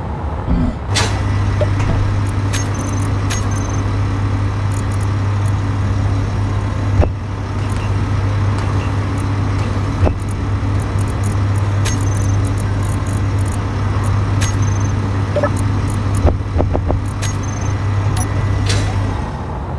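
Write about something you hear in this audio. Interface buttons click sharply, one after another.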